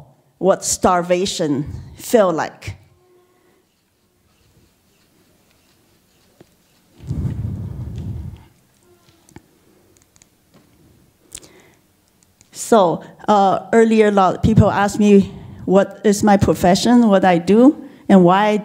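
A woman speaks with animation through a microphone, in pauses.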